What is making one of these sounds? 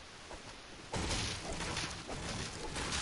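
A pickaxe strikes wood with loud thuds.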